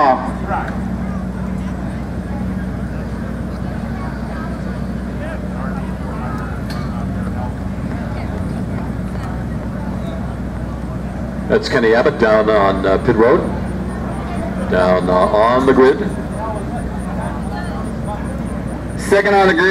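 A crowd of people chatters in the open air.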